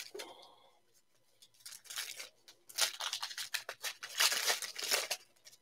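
Plastic wrappers rustle and crinkle close by.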